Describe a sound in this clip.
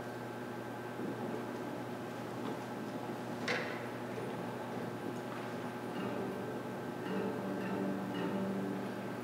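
An orchestra plays softly in a large echoing hall.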